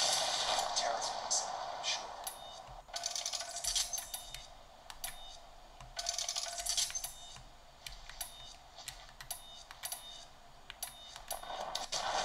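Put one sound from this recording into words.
Buttons on a handheld game controller click softly.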